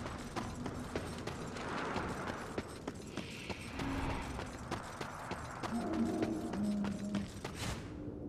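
Heavy armoured footsteps thud quickly on stone.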